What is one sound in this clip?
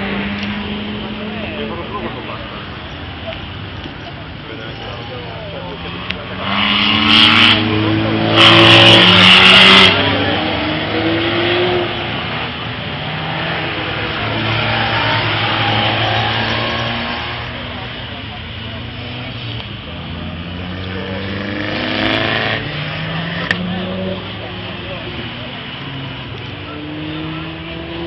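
Small car engines rev loudly as cars race past.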